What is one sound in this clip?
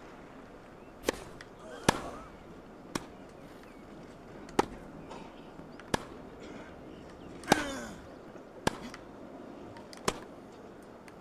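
A racket strikes a tennis ball back and forth in sharp, even knocks.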